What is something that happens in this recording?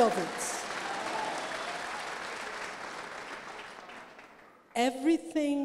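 A crowd cheers and applauds, then fades.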